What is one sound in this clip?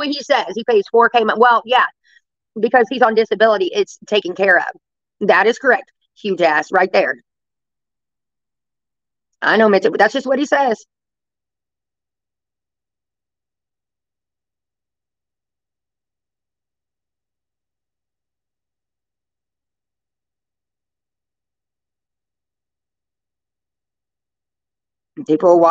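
A middle-aged woman speaks casually into a microphone, close by, pausing often.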